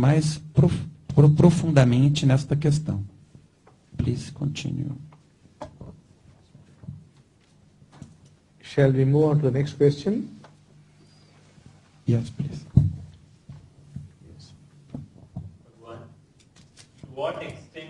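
An elderly man speaks calmly and slowly through a microphone, with pauses.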